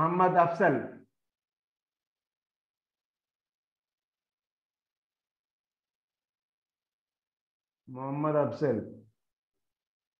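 A man speaks calmly over an online call, in short phrases with long pauses.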